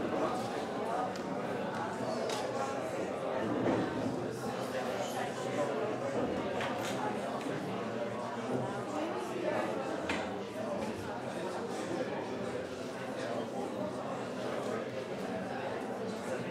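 Many people murmur and chat together in a large room.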